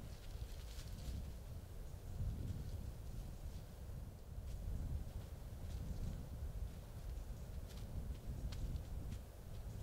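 A deer steps through dry leaves.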